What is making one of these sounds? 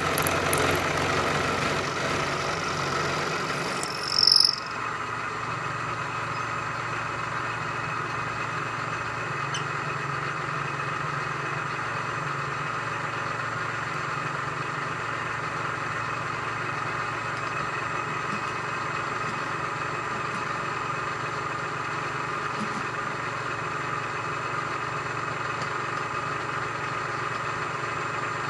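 A milling cutter spins and cuts into metal with a steady whine.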